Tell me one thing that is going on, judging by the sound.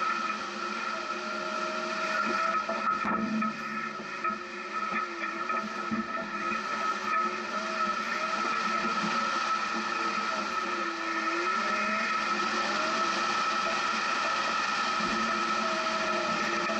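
An engine hums steadily, its pitch rising and falling as a vehicle climbs over rough ground.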